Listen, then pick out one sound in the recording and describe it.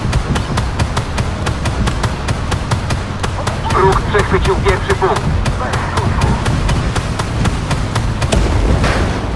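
A machine gun fires in rapid, steady bursts.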